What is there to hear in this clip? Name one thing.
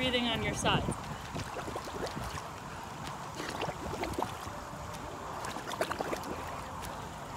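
Bubbles gurgle as a woman breathes out underwater.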